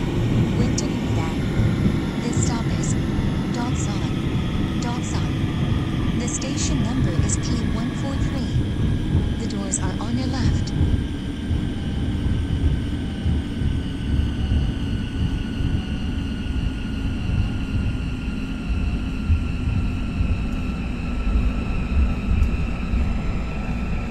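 A train rumbles steadily along its tracks.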